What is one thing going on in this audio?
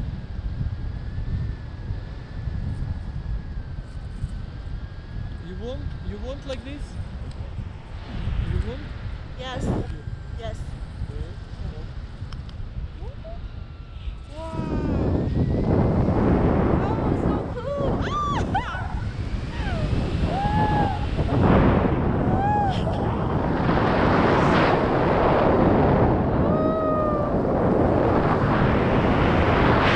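Wind rushes and buffets loudly, growing stronger partway through.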